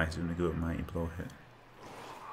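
A man speaks casually into a microphone.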